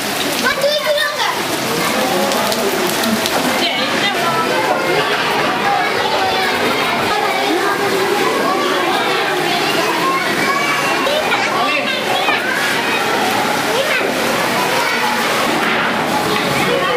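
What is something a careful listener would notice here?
Children chatter and call out nearby.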